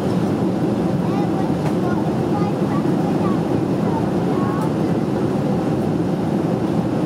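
A jet airliner's engines roar steadily inside the cabin.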